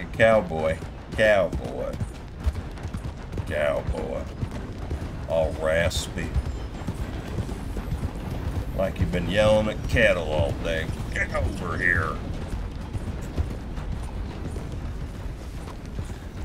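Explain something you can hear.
A horse's hooves thud steadily on a dirt trail.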